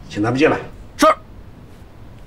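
A man answers with a short word.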